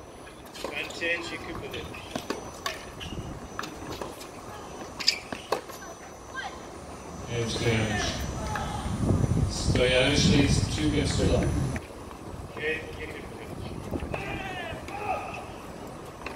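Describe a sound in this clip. Tennis shoes squeak on a hard court.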